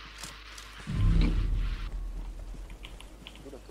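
A smoke grenade bursts with a low thump and a rushing hiss.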